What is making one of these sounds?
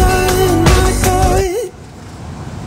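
A young man sings loudly.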